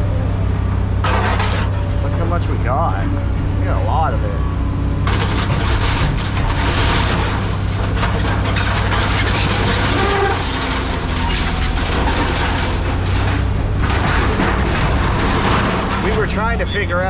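Scrap metal clanks and scrapes as a grab moves it.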